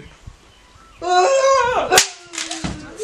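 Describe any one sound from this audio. A young man cries out loudly with emotion.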